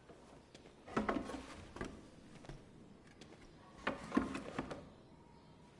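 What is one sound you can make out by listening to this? A canvas thumps and scrapes as a man moves it.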